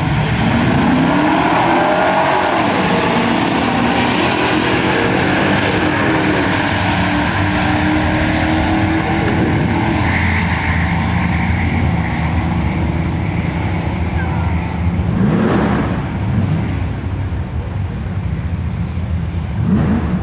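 Race car engines roar loudly, then fade into the distance.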